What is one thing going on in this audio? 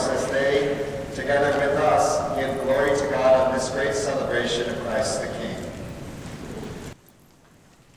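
A man chants through a microphone, echoing in a large hall.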